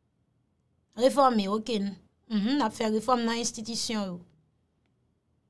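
A woman speaks with feeling close to a microphone.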